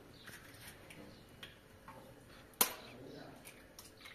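An egg cracks against a bowl.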